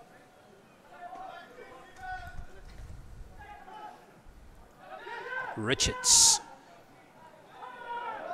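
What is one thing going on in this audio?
Young men shout to each other outdoors across an open field.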